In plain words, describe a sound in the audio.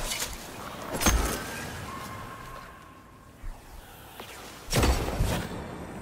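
A sniper rifle fires a sharp, booming shot.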